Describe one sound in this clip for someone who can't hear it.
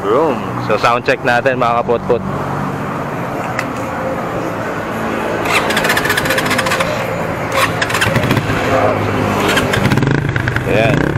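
A motorcycle engine idles with a steady, throbbing rumble close by.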